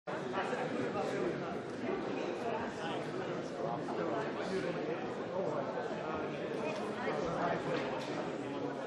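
Many men and women chatter at once in a large echoing hall.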